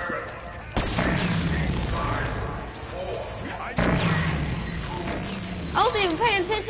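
A sci-fi energy weapon fires with loud crackling zaps.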